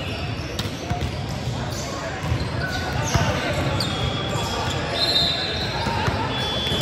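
Voices of young men and women chatter and call out across a large echoing gym.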